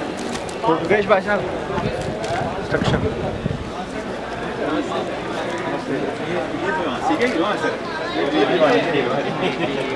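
Several men talk among themselves nearby.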